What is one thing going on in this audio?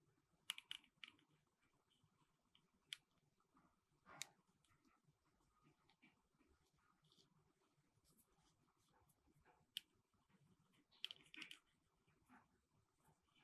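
Small plastic toys click and tap against each other.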